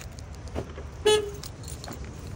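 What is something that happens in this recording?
A car beeps as it locks.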